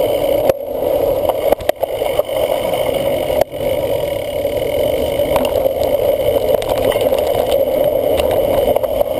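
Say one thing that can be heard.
Wind buffets a microphone as a cyclocross bike rides at speed.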